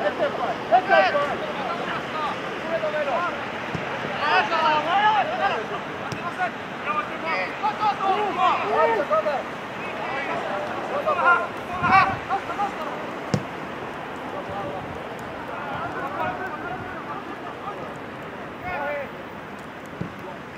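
Young men shout to each other across an open outdoor pitch.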